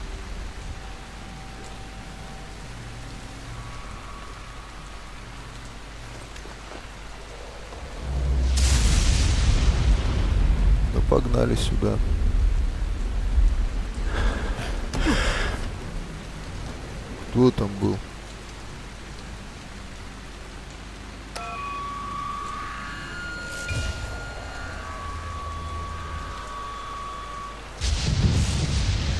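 Rain pours down steadily outdoors.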